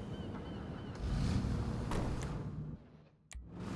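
A car engine starts and rumbles.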